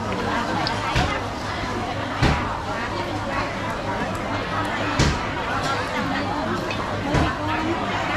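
Many people chatter in a busy, bustling crowd.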